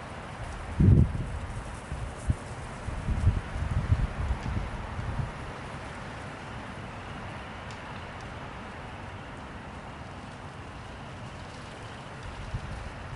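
A small vehicle engine hums far off.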